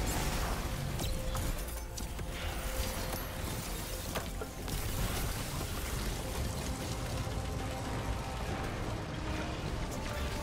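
Heavy blasts boom and crackle.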